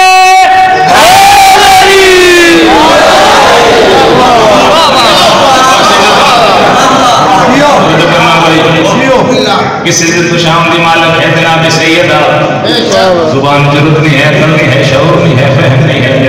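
A man recites passionately into a microphone, heard through loudspeakers in an echoing hall.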